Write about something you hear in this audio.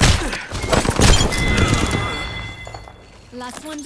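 Heavy blows and shots thud in a quick loud burst, then fade.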